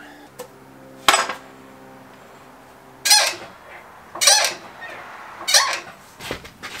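A floor jack's handle pumps with sharp clicks and clanks.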